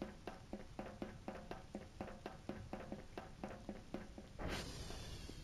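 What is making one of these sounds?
Footsteps clang steadily on metal stairs.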